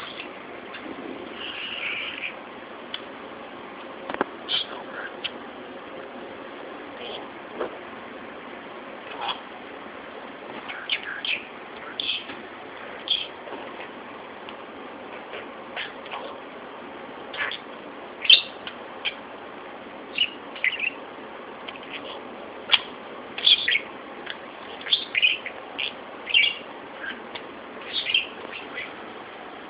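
A budgerigar chirps in short bursts.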